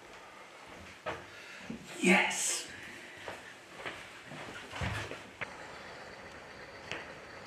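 Footsteps of a man walk along a hard floor.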